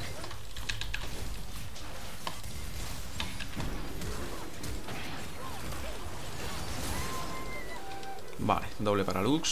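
Magic spells crackle and whoosh in a fast fight.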